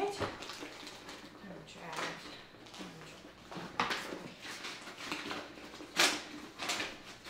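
A leather bag rustles and its contents shuffle.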